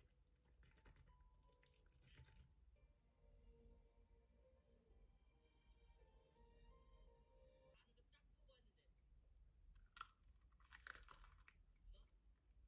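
A young woman chews and slurps food close up.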